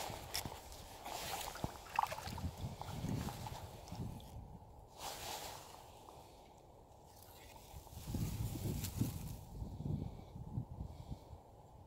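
Water laps gently against a kayak hull.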